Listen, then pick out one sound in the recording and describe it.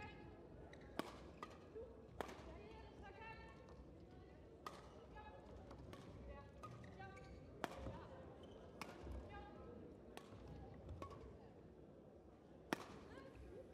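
Rackets strike a shuttlecock in a sharp back-and-forth rally in an echoing hall.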